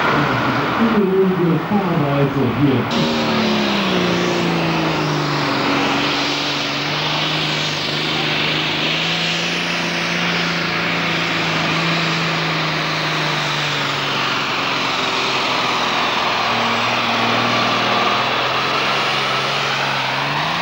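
A tractor engine roars loudly, revving up and then droning steadily as it pulls.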